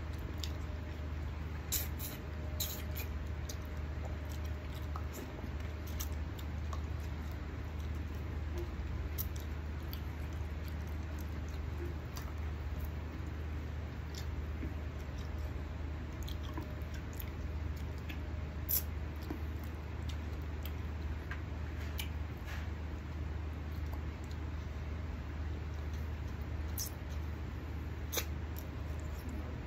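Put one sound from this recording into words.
A man crunches and sucks on bones.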